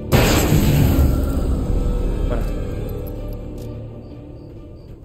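A loud rumbling blast roars and slowly fades.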